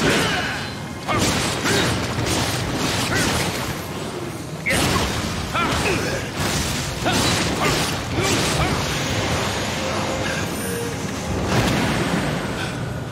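Heavy blows strike with sharp impacts.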